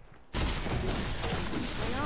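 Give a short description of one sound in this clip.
A pickaxe strikes a tree trunk with a dull thud.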